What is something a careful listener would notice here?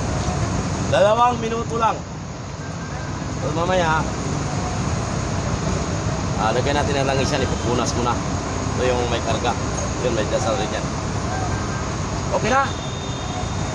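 An older man talks with animation outdoors.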